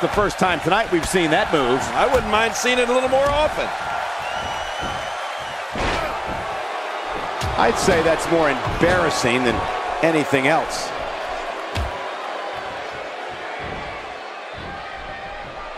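A crowd cheers and murmurs steadily.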